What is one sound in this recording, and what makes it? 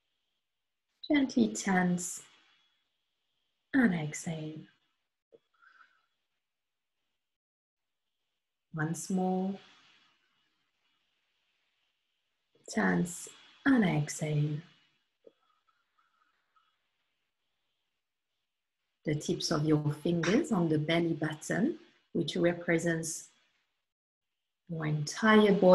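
A woman speaks slowly and calmly into a microphone over an online call, pausing often.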